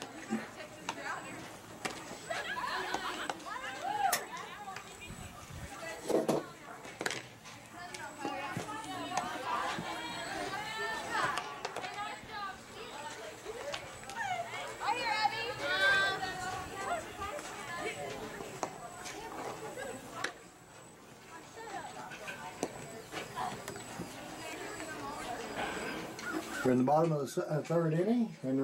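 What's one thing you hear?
Spectators and players chatter and call out outdoors.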